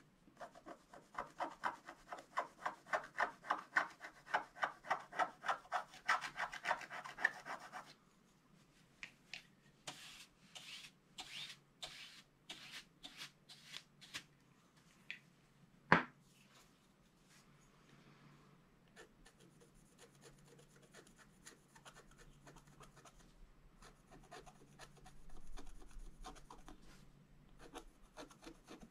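A wooden stick scratches quickly and rhythmically across a card.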